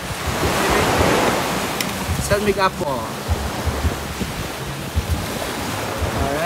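Waves wash onto a shore nearby.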